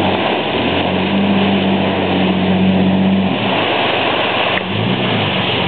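Water splashes and sloshes under a vehicle's tyres.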